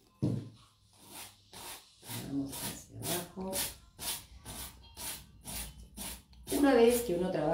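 A hand rubs quickly across a cardboard box with a brushing sound.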